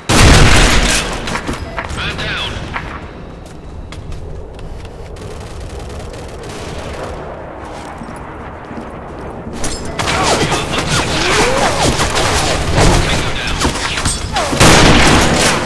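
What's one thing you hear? A sniper rifle fires with a loud, sharp bang.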